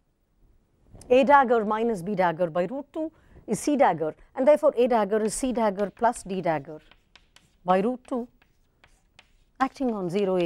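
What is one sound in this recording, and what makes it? A woman lectures calmly through a microphone.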